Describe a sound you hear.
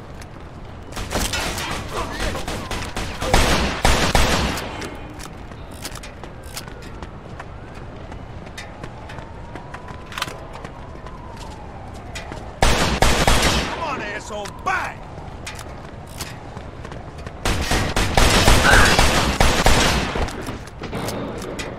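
Gunshots ring out in rapid bursts with echoes.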